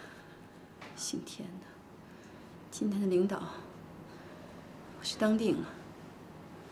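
A young woman speaks quietly and hesitantly, close by.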